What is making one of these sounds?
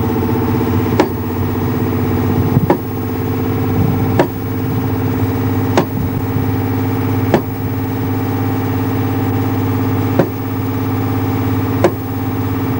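A sledgehammer strikes metal spikes with sharp, ringing clangs.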